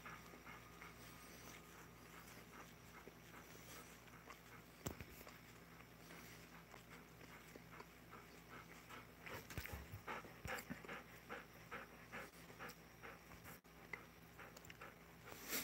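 Two dogs pant quickly close by.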